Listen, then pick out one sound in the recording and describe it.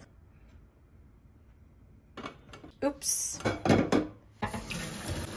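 A metal pot clatters onto a stove.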